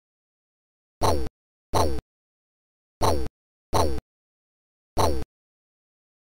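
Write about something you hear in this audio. Punches land with short bursts of game sound effects.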